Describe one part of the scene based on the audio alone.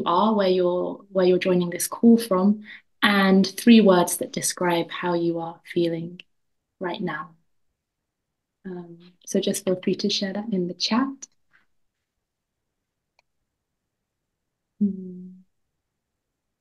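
A young woman speaks calmly through an online call microphone.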